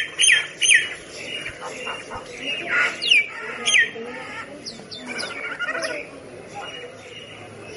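A bird chirps and whistles with sharp, sliding calls.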